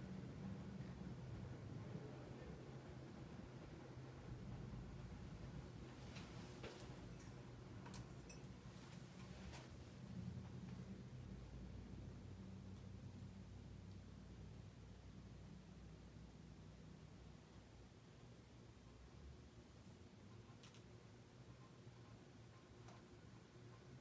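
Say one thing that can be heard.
A ceiling fan hums and whirs steadily.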